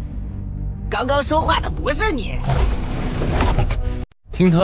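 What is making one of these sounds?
A young man asks a question sharply.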